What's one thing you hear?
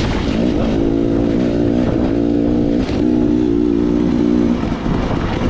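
Wind rumbles over the rider.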